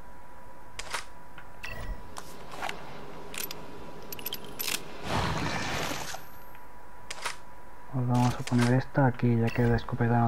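Short electronic clicks tick as a menu is scrolled.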